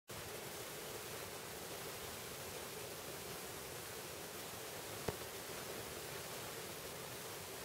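A vinyl record spins with a soft, steady hiss.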